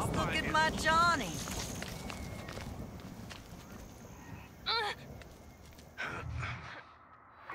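Footsteps scuff along a dirt path.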